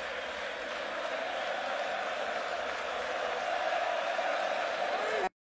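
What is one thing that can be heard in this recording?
A huge outdoor crowd roars and cheers steadily.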